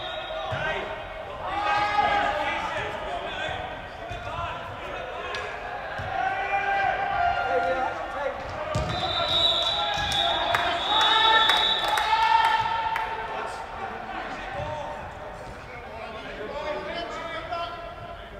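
Young women shout to each other across a large echoing hall.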